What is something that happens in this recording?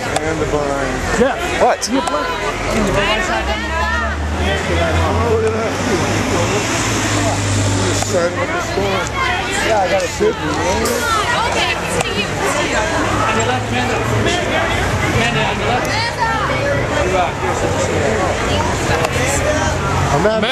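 A crowd of people talk and call out all at once close by.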